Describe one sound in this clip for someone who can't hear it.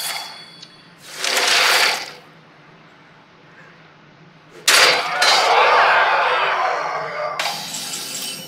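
A magical whoosh and shimmer bursts out.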